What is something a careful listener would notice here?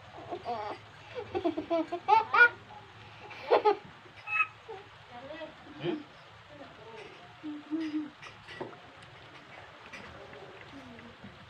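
A young child whines and cries nearby.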